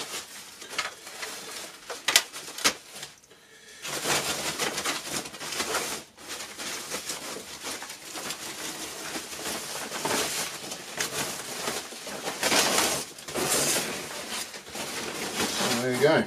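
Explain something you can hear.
Plastic wrapping rustles and crinkles loudly.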